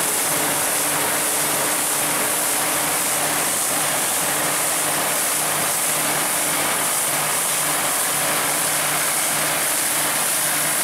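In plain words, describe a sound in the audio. A combine harvester whirs and rattles as it cuts grain.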